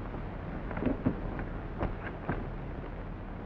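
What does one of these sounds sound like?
Cards and chips click softly on a table.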